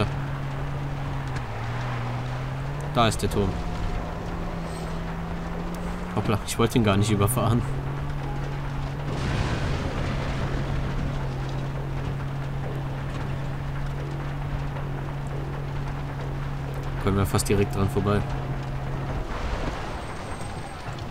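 Tyres roll over a dirt track.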